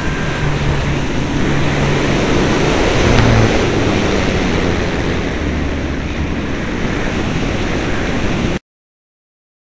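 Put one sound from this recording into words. Wind roars loudly past a small aircraft in flight.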